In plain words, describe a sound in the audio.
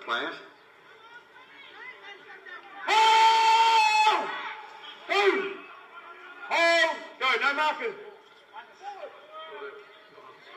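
Young men shout loudly across an open playing field.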